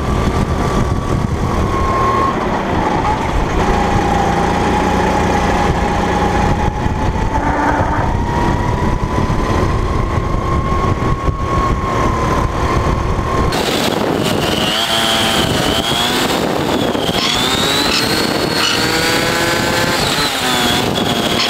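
A kart engine buzzes loudly close by, its pitch rising and falling as it speeds up and slows down.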